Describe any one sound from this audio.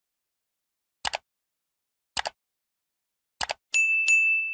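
A mouse clicks several times.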